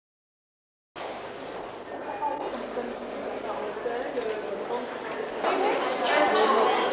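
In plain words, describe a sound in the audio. A crowd murmurs and chatters in a busy hall.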